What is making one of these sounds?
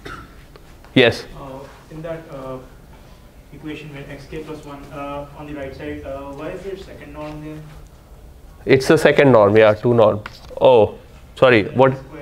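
A man lectures to a class.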